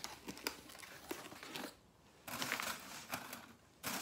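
A cardboard box slides across a tablecloth.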